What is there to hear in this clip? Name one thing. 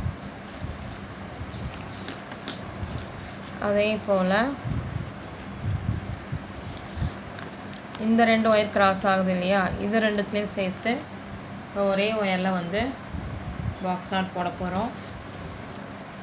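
Plastic strips rustle and click softly as they are woven by hand.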